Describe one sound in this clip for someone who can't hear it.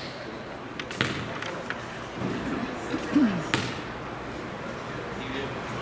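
A basketball bounces on a wooden floor a few times.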